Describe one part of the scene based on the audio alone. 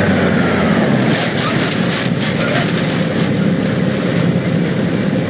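Metal crunches and creaks as a car is crushed.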